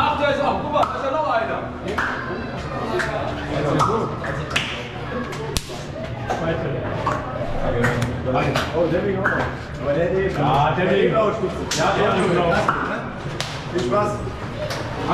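Several men talk and greet each other nearby in an echoing corridor.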